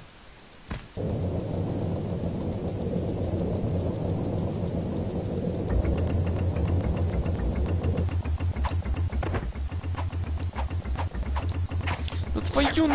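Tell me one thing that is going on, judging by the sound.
A mine cart rumbles and rattles along rails.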